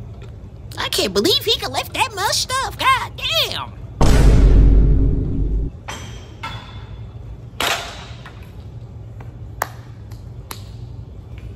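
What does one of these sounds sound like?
Metal weight plates clank on a cable machine.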